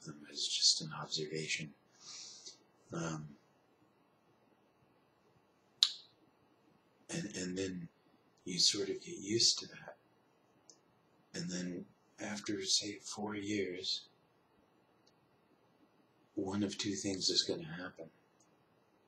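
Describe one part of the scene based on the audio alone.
A young man talks calmly and close by, with pauses.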